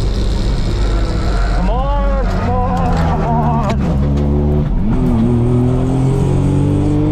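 A race car engine roars loudly from inside the car, revving up and down.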